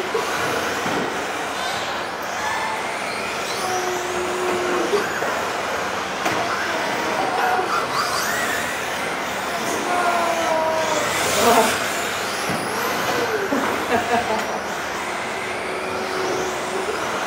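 Small electric toy cars whine and buzz as they race around a large echoing hall.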